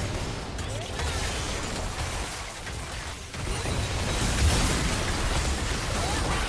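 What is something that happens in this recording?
Game spell effects whoosh, crackle and blast during a battle.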